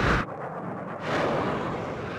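A missile whooshes away from a jet.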